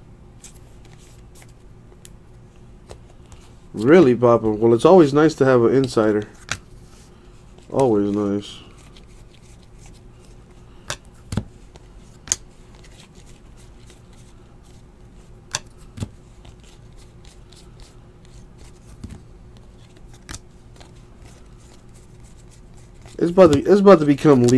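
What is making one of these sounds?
Trading cards rustle and flick as they are shuffled by hand, close by.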